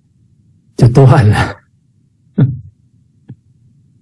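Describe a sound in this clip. A middle-aged man laughs over an online call.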